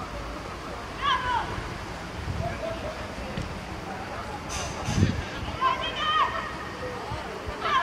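Children shout across an outdoor football pitch.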